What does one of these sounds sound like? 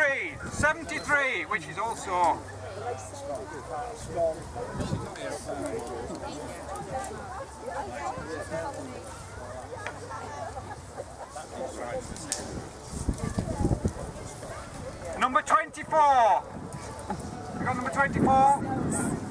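A man speaks nearby in a calm voice outdoors.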